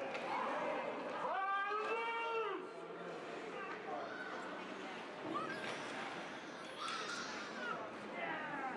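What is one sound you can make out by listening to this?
Adult spectators shout and cheer nearby in a large echoing rink.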